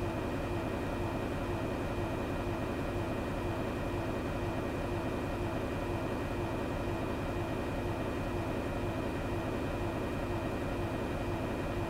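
Airliner jet engines drone steadily in cruise, heard from inside the cockpit.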